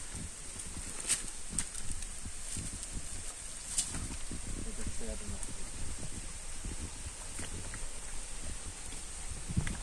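Calf hooves clatter and scrape on loose stones.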